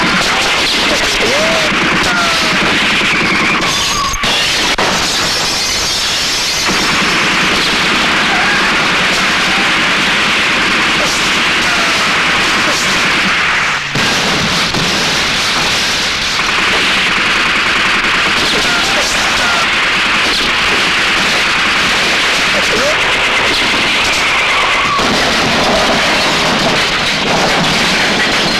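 Car engines roar as vehicles speed along.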